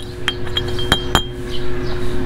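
A hammer strikes metal with sharp ringing clanks.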